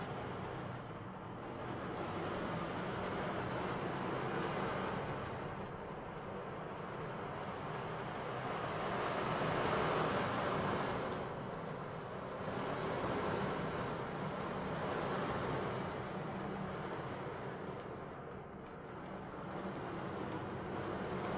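Beads roll inside an ocean drum, swishing like waves that swell and fade.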